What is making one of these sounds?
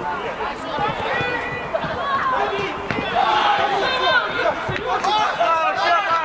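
A football is kicked hard on an artificial pitch.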